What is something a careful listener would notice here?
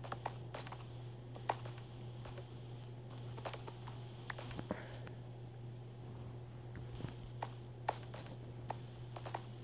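Footsteps tap on stone in a tunnel.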